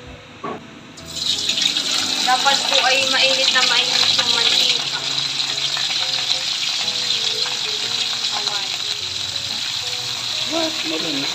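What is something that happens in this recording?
Hot oil sizzles and crackles loudly as food fries.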